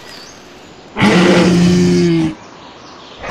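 A large creature lets out a loud, pitched roar.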